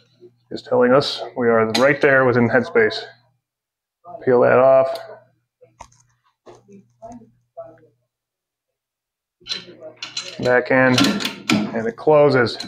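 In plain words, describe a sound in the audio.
Metal parts click and scrape together.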